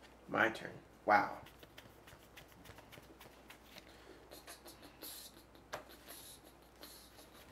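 Playing cards tap and shuffle on a table.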